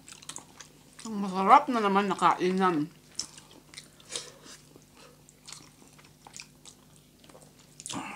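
Food squelches and crunches as people eat close up.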